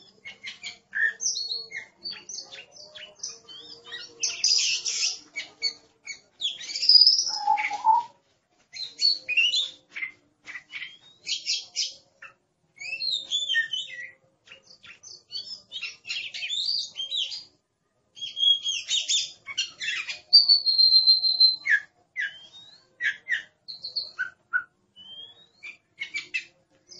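Songbirds sing loud, varied whistles and chirps.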